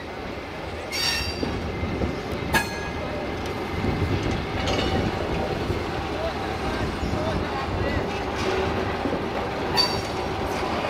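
Train wheels clank sharply over rail joints.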